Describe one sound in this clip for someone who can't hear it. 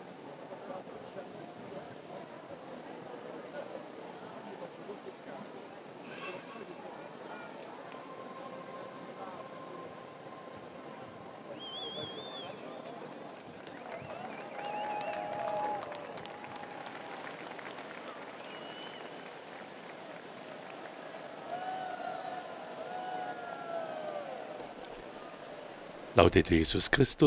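A large outdoor crowd murmurs.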